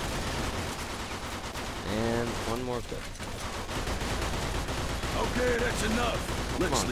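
A submachine gun fires rapid bursts of shots.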